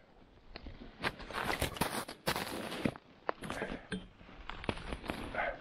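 Fabric and straps rustle as a backpack is handled.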